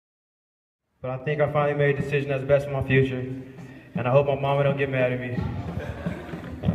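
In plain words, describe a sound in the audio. A young man speaks with emotion into a microphone in a large echoing hall.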